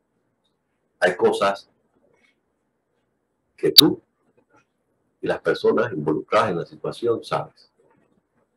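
An older man speaks calmly into a microphone, with pauses between phrases.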